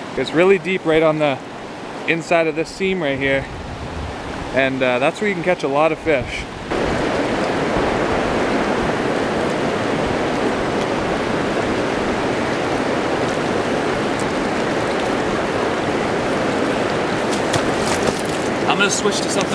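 River rapids rush and roar nearby.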